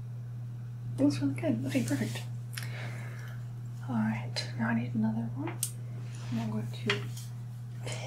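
A young woman speaks softly, close to the microphone.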